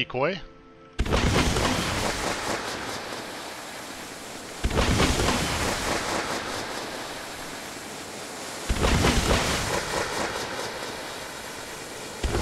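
A spaceship's cannon fires rapid bursts of blasts.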